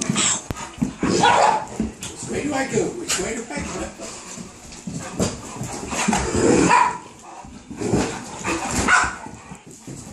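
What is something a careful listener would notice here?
A dog scampers and scuffles on a carpet.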